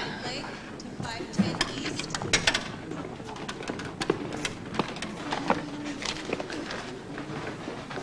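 A woman speaks calmly into a phone nearby.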